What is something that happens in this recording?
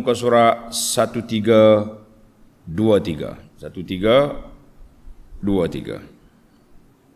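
An older man speaks slowly and calmly into a close microphone.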